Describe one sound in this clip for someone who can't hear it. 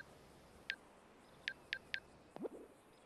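Electronic phone beeps sound in short bursts.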